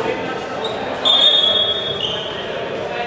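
A referee blows a long whistle blast.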